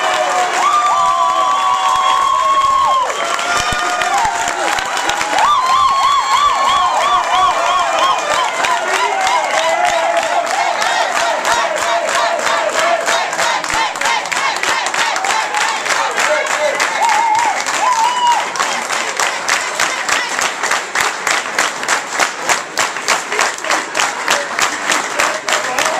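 A crowd cheers and shouts excitedly close by.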